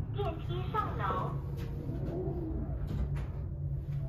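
Elevator doors slide shut.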